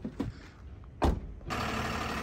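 A truck door slams shut.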